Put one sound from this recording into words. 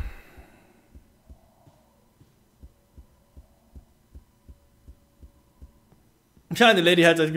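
Footsteps tap at an even pace on a hard floor.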